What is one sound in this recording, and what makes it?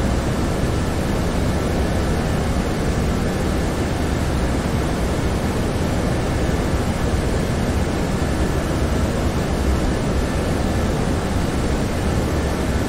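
Engines and rushing air drone steadily inside a jet airliner's cockpit in flight.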